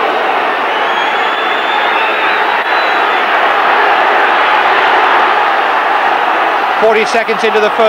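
A large crowd roars and cheers loudly outdoors.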